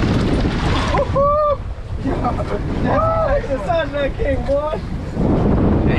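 A man shouts excitedly nearby.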